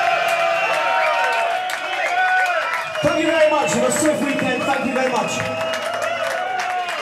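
A man sings loudly into a microphone over a loudspeaker system.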